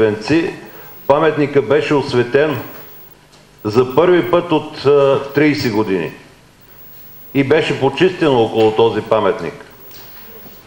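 A middle-aged man speaks calmly into a microphone in bursts with pauses.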